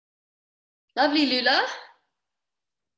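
A young woman speaks briefly and calmly over an online call.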